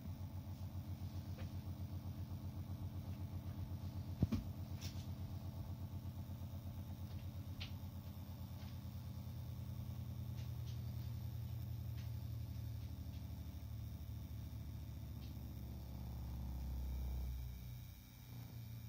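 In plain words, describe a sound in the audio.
A small electric motor hums with a fast, pulsing buzz, then winds down.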